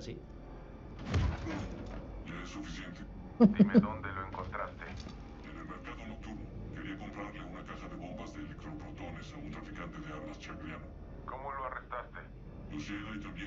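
A young man talks into a headset microphone.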